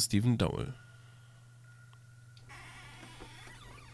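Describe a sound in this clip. A wooden cabinet door creaks open.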